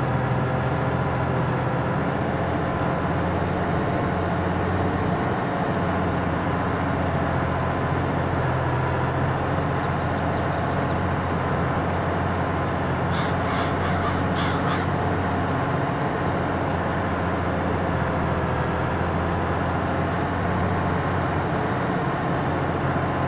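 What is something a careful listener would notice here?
A tractor engine drones steadily at a low pitch.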